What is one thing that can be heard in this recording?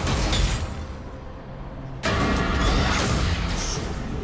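Magic spells burst and crackle during a fight.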